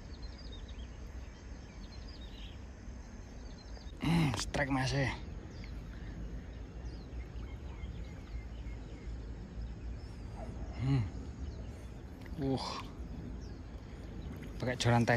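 Water laps gently against stones at the shore.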